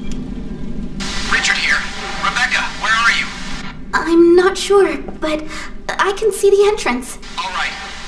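A young woman speaks urgently into a radio.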